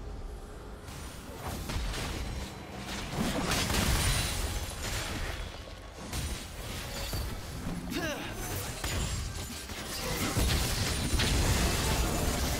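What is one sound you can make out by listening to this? Fantasy combat sound effects crackle and burst as spells hit.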